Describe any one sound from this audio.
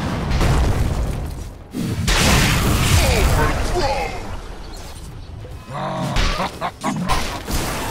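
Fire roars and crackles in bursts.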